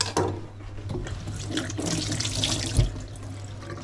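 Water runs from a tap over hands.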